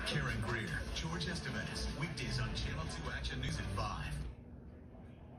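A news broadcast plays from a television loudspeaker.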